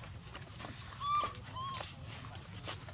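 A baby monkey squeaks in short, high cries close by.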